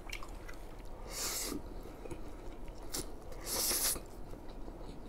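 A young man slurps noodles loudly.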